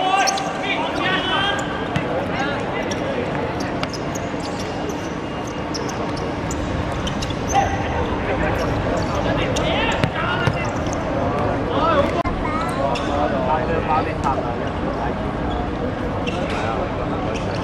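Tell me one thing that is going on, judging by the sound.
A crowd of men chatter and shout nearby outdoors.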